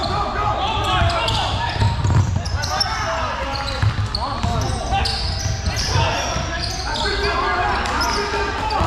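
Young players and spectators shout and chatter in a large echoing gym.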